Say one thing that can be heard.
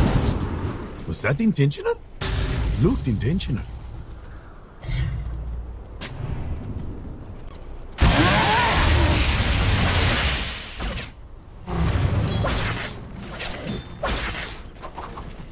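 Game spell effects crackle and burst.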